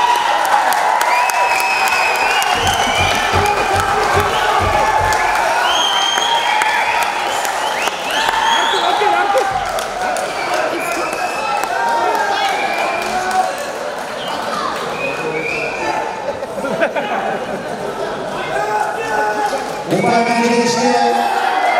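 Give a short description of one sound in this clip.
A crowd chatters and shouts loudly in a large echoing hall.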